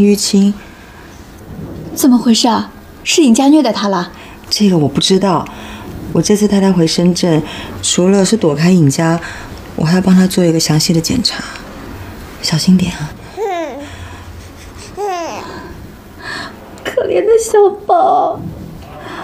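A middle-aged woman speaks anxiously nearby.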